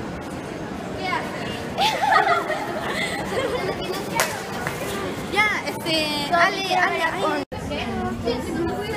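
Teenage girls laugh loudly close by.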